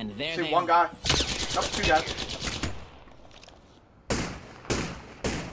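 A rifle fires loud shots, one after another.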